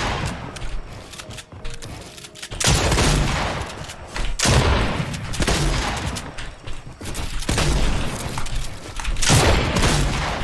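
Game building pieces clatter and thud in quick bursts.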